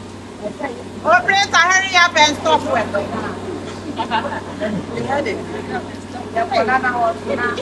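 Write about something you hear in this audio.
A woman speaks loudly and with animation outdoors, close by.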